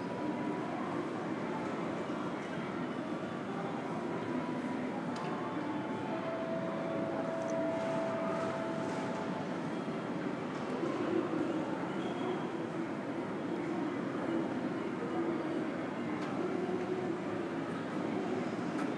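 Distant voices murmur and echo through a large, quiet hall.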